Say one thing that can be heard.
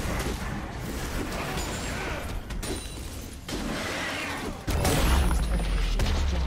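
Spell effects crackle and burst in a video game battle.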